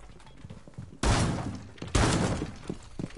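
Gunshots bang loudly and echo.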